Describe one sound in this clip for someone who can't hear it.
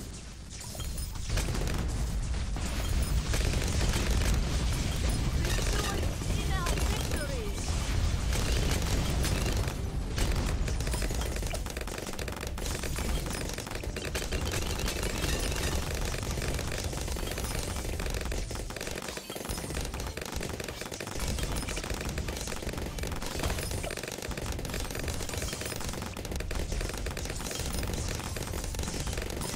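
Balloons pop rapidly in a game.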